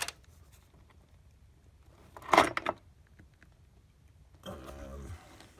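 A small metal pick scrapes and clicks against a plastic ignition coil.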